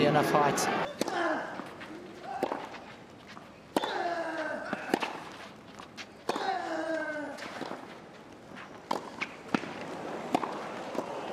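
A tennis ball is struck sharply back and forth.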